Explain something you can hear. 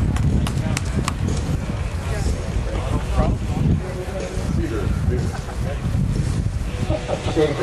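A seated crowd murmurs and chatters in the distance, outdoors.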